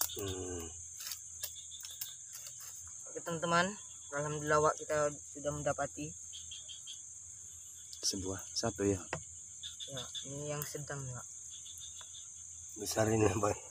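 Water trickles from a bottle onto the ground.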